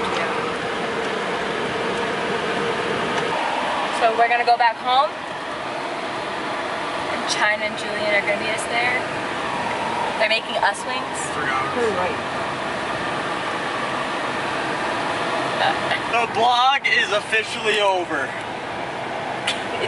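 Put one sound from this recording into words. A car's road noise hums steadily inside the cabin.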